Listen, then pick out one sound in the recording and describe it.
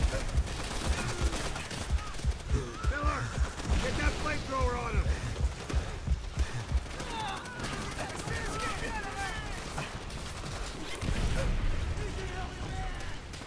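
A young man talks with animation into a headset microphone.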